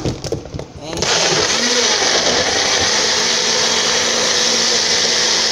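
A blender motor whirs loudly and steadily.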